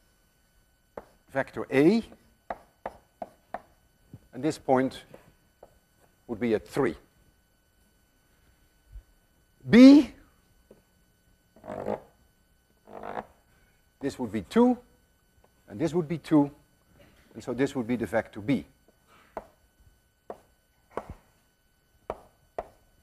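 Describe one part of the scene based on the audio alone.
An elderly man speaks steadily in a lecturing tone, with pauses.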